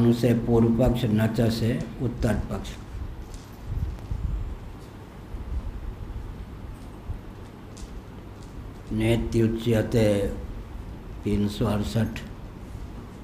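An elderly man speaks calmly into a microphone, reading out in bursts with pauses.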